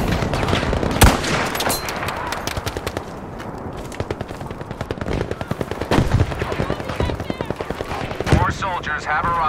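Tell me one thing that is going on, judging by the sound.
A rifle fires with a sharp crack a few times.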